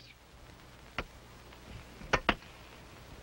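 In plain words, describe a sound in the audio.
A pickaxe strikes the dry ground.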